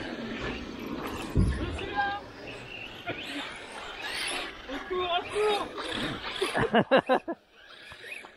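A small electric motor whines as a toy car drives over dirt.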